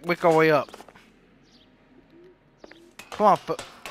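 Shoes clank on metal ladder rungs.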